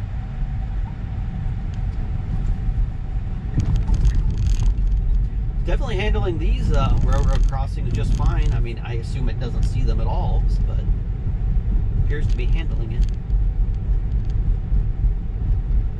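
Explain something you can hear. A car rolls along a road with a low, steady rumble.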